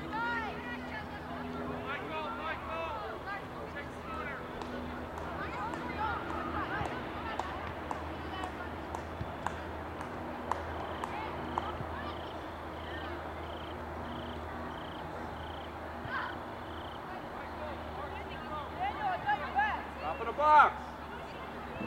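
Spectators call out and cheer from the sideline.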